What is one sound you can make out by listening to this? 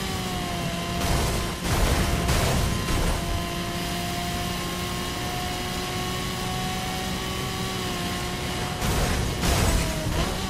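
Loud whooshing bursts sweep past as the car passes traffic.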